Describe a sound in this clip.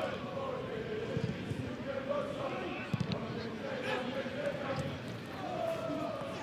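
A stadium crowd murmurs and cheers steadily in the distance.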